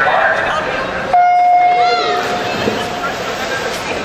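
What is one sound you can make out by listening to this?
Swimmers dive into the water with a splash.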